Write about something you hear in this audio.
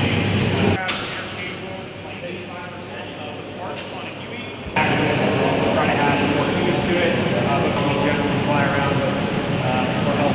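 A man speaks calmly to a group nearby.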